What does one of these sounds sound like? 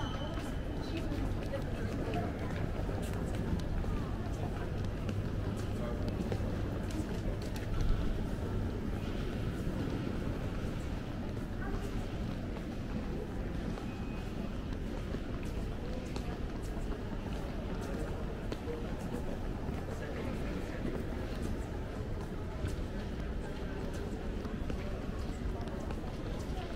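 A low murmur of shoppers' voices and footsteps echoes through a large indoor hall.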